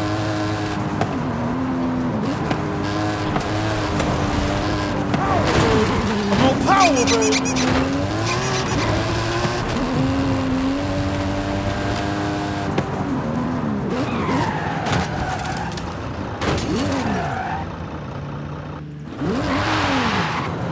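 A racing car engine roars at high speed, its pitch rising and dropping with gear changes.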